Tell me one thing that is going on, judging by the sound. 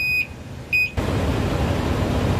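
Iron ore slides and pours from a tipping dump truck.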